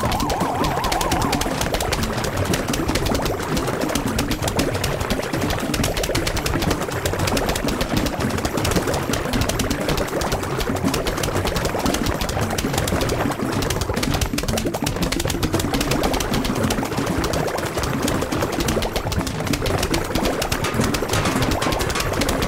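Cartoon plants rapidly shoot peas with dense popping and thudding.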